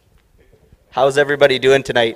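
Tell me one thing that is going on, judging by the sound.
A man speaks loudly into a microphone in a large hall.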